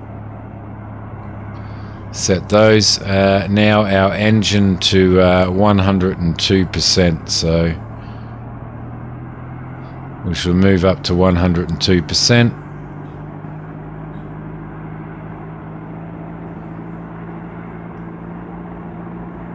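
A helicopter engine hums steadily.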